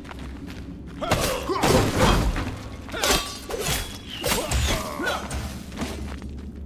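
A pickaxe strikes rock with sharp, ringing blows.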